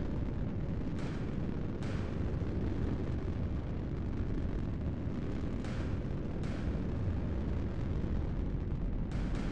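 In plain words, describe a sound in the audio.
Laser weapons fire in short bursts.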